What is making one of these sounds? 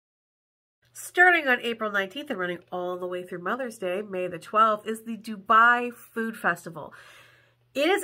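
A young woman speaks with animation close to a microphone.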